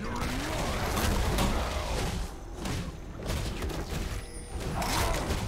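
Video game spell blasts and hits crackle in quick bursts during a fight.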